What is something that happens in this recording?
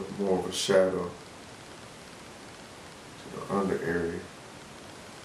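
A man speaks briefly and calmly close by.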